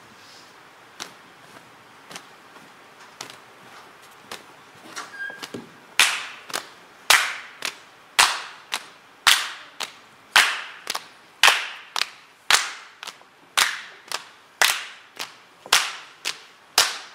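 Hard dance shoes tap and stamp in rhythm on a wooden stage.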